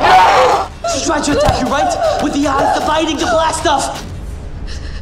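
A young man speaks urgently and with animation.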